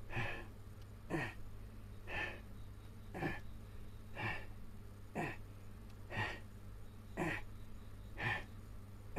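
A man close by grunts with effort in a steady rhythm, about once a second.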